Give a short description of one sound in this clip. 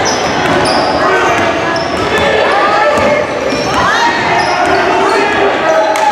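A basketball is dribbled on a hardwood court.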